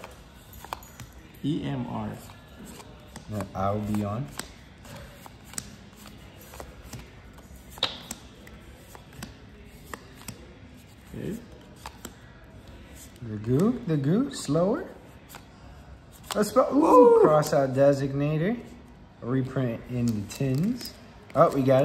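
Trading cards rustle and flick as they are handled and sorted.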